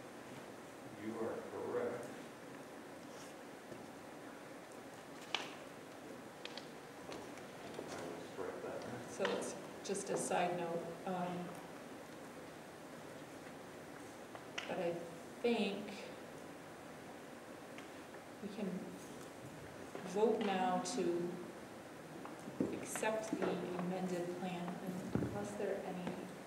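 A woman speaks in short bursts at a distance, in a large echoing hall.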